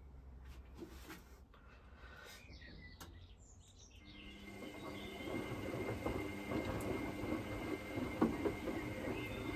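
A washing machine drum turns with a low hum.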